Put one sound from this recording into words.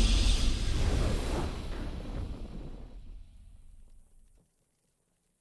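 A triumphant game fanfare rings out and fades away.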